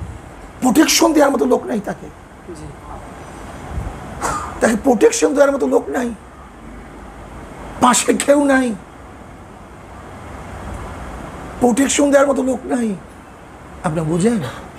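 A man speaks emphatically into a microphone in short bursts with pauses.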